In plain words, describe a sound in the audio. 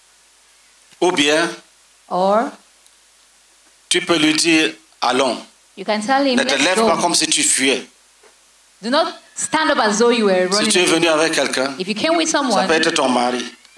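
A man speaks with animation into a microphone over a loudspeaker.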